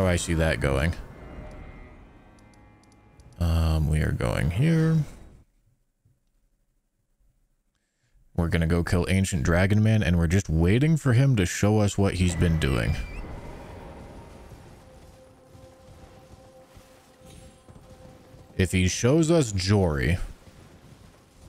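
A young man talks with animation into a close microphone, in bursts with pauses.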